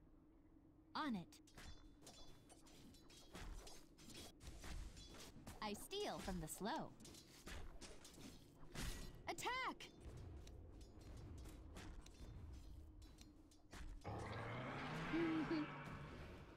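Video game spells whoosh and clash in a fight.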